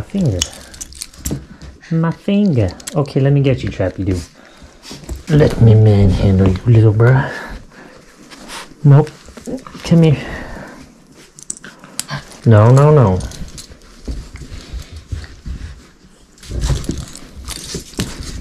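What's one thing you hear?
Hands handle a fabric leash with soft rustling.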